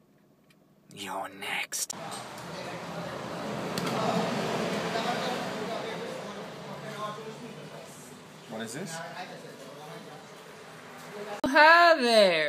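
A teenage boy talks close by.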